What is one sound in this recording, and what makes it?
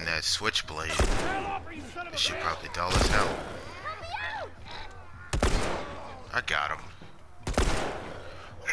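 Gunshots ring out one at a time, each followed by a short echo.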